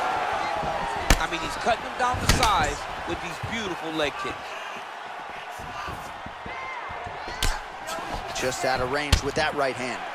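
A kick lands on a body with a sharp thud.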